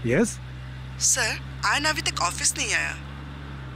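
A man talks into a phone close by.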